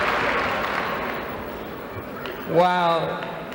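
A crowd in a large hall applauds and cheers, then fades.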